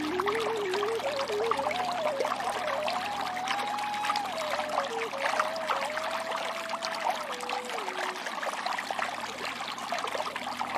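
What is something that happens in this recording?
Water rushes and splashes steadily over rocks.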